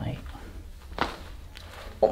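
A neck joint cracks with a sharp pop.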